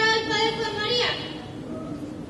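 A young woman sings in a clear voice.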